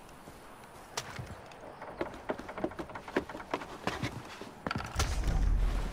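Hands and boots clank on a wooden ladder while climbing.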